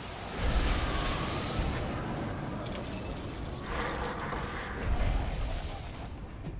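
Magic blasts and explosions boom and crackle in a chaotic battle.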